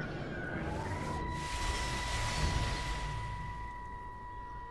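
A loud rushing whoosh swells and fades away.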